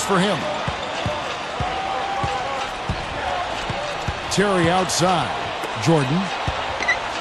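A basketball bounces on the court in a steady dribble.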